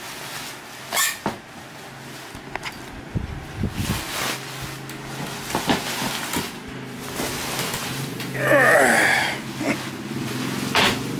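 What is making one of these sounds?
A wooden frame knocks and clatters as it is moved.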